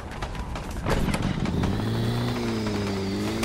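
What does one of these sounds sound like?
A small motor engine hums and revs.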